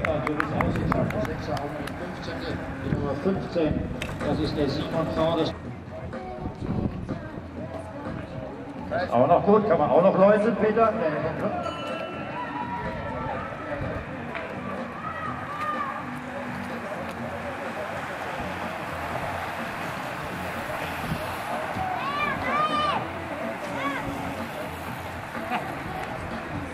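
Racing bicycles whoosh past on a wet road.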